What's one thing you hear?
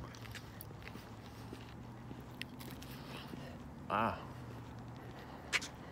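A young man chews food with his mouth close by.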